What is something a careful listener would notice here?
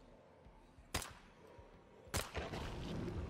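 A gun fires a shot.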